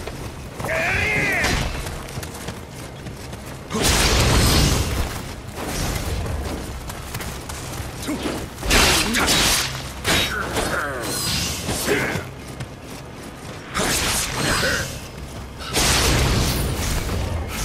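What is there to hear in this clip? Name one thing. Heavy blows thud as fighters attack.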